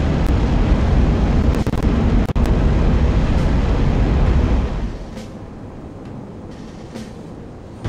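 A jet engine roars loudly and steadily, then drops to a quieter hum.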